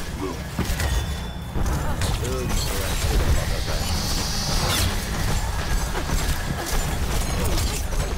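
Rapid energy gunfire zaps and crackles.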